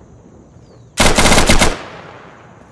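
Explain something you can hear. A rifle fires a rapid burst of shots that echoes away.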